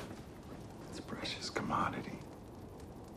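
A middle-aged man speaks with a raised voice.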